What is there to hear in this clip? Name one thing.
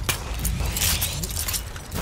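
A cable pulley whirs as someone slides down a zip line.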